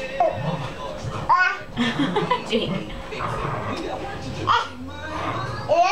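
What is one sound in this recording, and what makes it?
A baby claps its hands.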